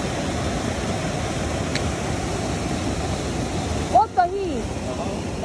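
A shallow river rushes and splashes over rocks and a small waterfall.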